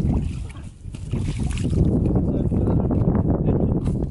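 Feet slosh through shallow water.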